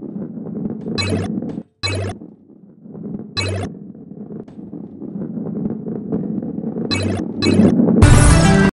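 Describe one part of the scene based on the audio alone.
Short, bright chimes ring as coins are picked up.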